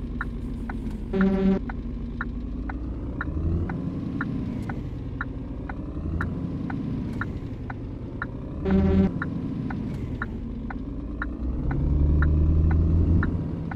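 A Scania diesel truck engine rumbles as the truck pulls away slowly.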